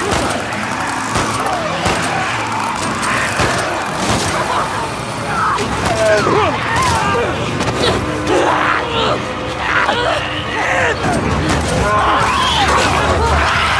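Infected creatures shriek and snarl wildly.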